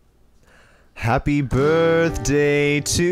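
Two young men sing together.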